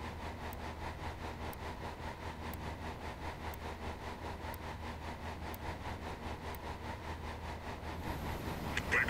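A countdown timer ticks once a second.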